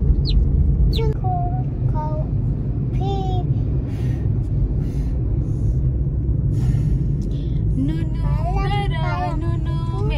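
A young child talks in a high voice close by.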